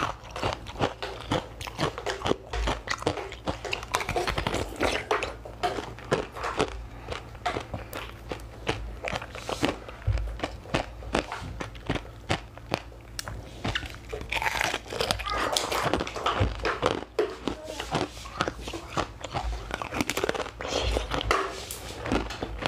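Ice crackles and creaks in a young woman's hands close to a microphone.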